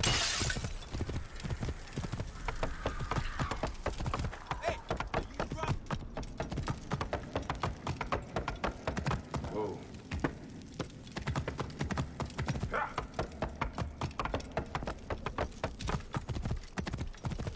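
Horse hooves clop steadily on the ground.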